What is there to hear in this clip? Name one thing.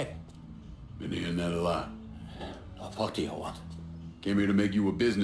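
A younger man answers calmly.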